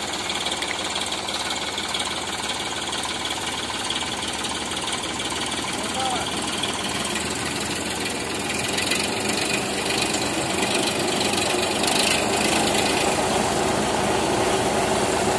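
A threshing machine roars and rattles steadily as it churns straw.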